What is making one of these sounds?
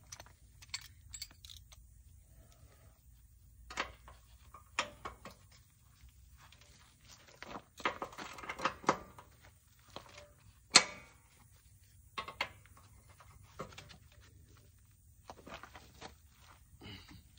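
Metal parts clink and scrape under a gloved hand.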